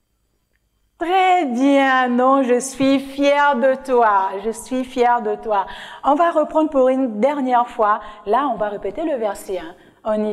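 A young woman sings cheerfully into a close microphone.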